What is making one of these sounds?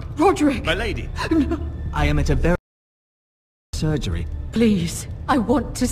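A woman speaks pleadingly nearby.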